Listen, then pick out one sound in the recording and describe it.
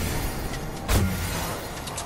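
A pickaxe swings and strikes with a sharp whoosh.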